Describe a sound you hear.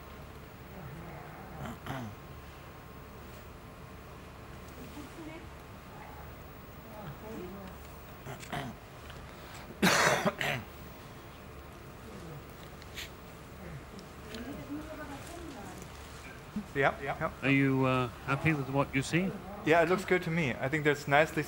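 A man speaks calmly and explains, close to a microphone.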